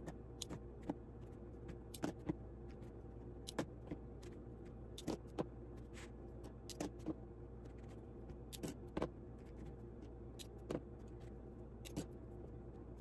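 Small clips snap and click onto fabric.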